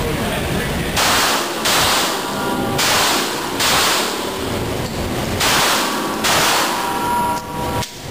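Pistol shots bang loudly and echo around a hard room.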